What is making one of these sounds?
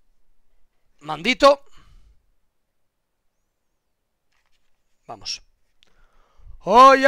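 A man speaks in short bursts into a close microphone.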